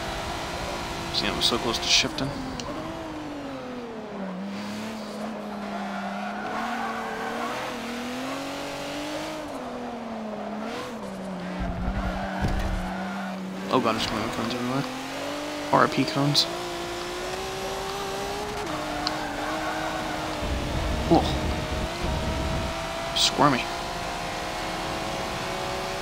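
A racing car engine drones and changes pitch as it slows through corners and speeds up again.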